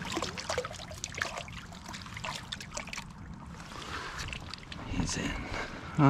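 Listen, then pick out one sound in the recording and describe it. A fish splashes in the water.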